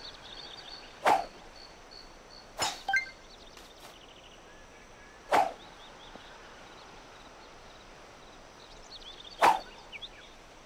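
A golf club swishes sharply through the air several times.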